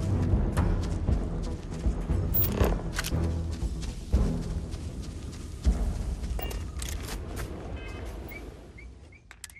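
Footsteps rustle through dense plants.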